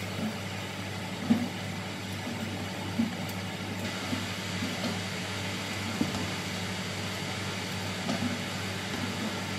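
An exhaust fan hums steadily.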